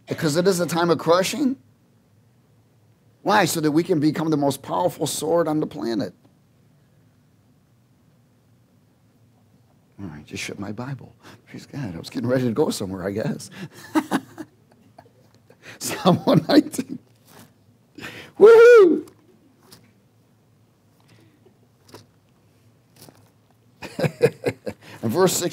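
A man speaks with animation through a headset microphone, in phrases with pauses between them.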